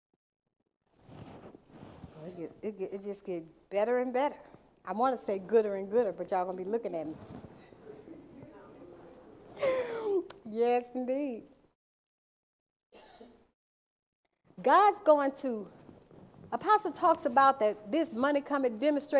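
A woman speaks expressively into a microphone, with long pauses.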